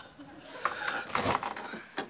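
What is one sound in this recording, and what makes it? A metal door latch rattles open.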